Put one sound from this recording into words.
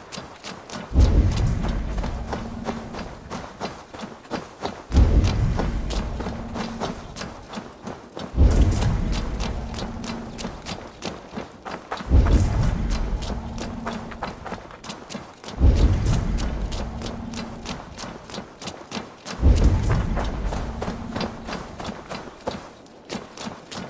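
A deep whooshing pulse booms out again and again, each one slowly fading.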